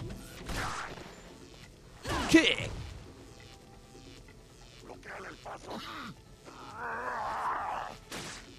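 A knife slashes through the air with a sharp swish.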